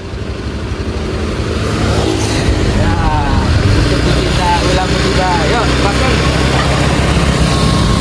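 A man talks outdoors.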